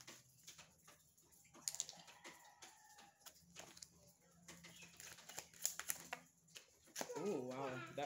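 Playing cards riffle and slap as they are shuffled by hand.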